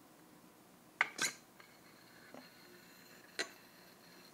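Metal tubes knock and clink together.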